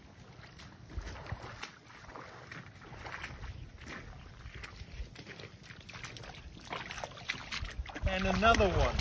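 A dog splashes through shallow water.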